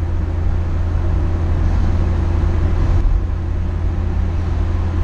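A car engine hums steadily with a deep, droning tone.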